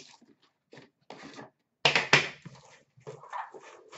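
A metal tin is set down with a clunk.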